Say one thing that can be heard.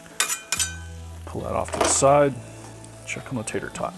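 A metal lid clanks down onto a griddle.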